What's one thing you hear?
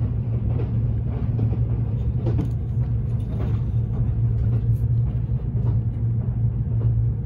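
A train rumbles along the tracks with a steady low drone.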